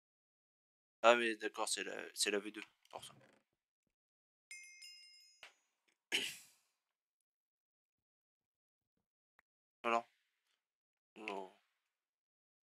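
A young man speaks with animation, close to a headset microphone, in short bursts.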